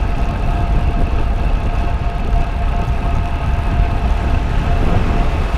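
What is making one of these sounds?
A bicycle's tyres hum on the road.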